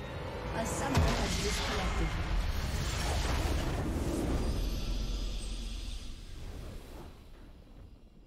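A triumphant game fanfare swells with a deep boom and slowly fades.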